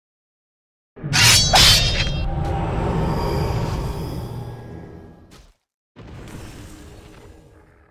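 A magic spell bursts with a loud whoosh and slowly fades.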